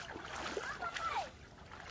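A shovel splashes through shallow water.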